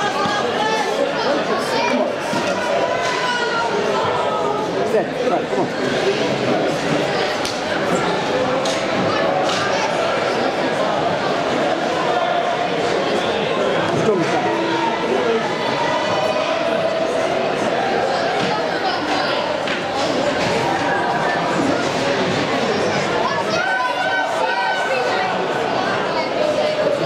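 Ice hockey skates scrape and carve on ice in an echoing rink.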